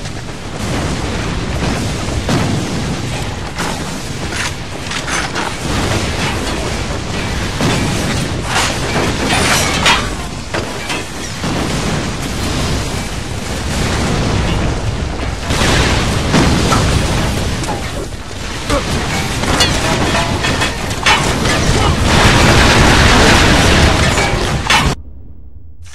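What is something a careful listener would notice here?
Gunfire and explosions boom and crackle in a loud battle.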